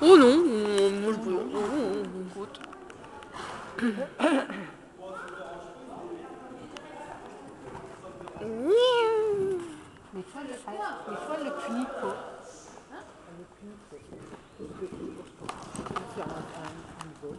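A horse's hooves thud softly on sand as it canters.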